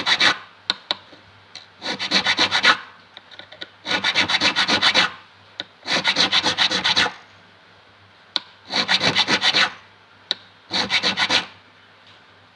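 A metal file rasps in quick bursts of short strokes across metal frets.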